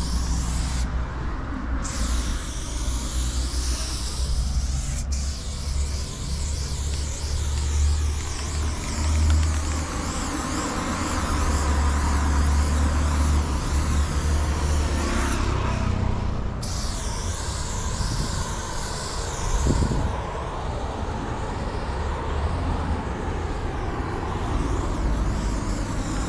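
A spray can hisses steadily up close.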